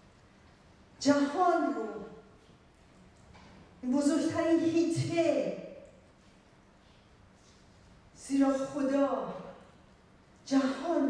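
A woman speaks with animation into a microphone, heard through a loudspeaker in an echoing hall, in short phrases with pauses.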